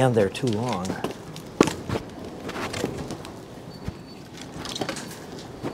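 Firewood logs knock and clatter as they are handled.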